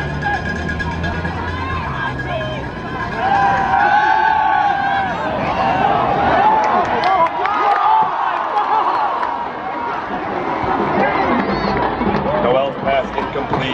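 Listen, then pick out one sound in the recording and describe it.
A crowd of spectators cheers and shouts nearby.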